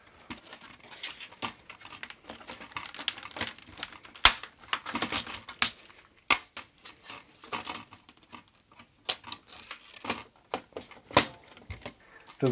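A plastic computer case knocks and clicks as hands lift and shift it.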